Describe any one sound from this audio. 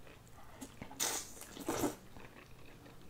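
Wet food squelches and slurps as it is eaten.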